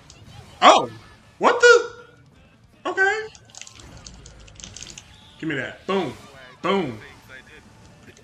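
A man exclaims in short bursts close to a microphone.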